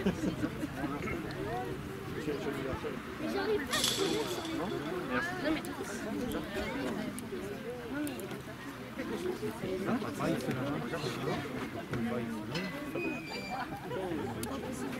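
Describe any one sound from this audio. A crowd of men and women chatter close by outdoors.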